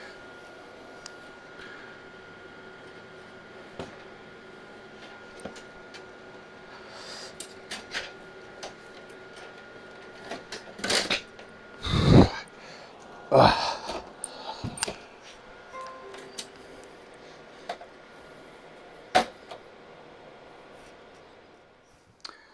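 Computer fans hum steadily.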